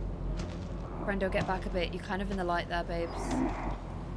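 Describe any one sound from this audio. A young woman speaks quietly through a headset microphone.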